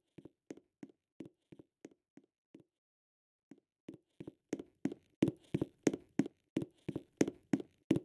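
A game character's footsteps patter on stone.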